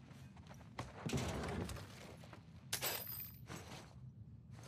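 Items rustle and clatter as a box is rummaged through.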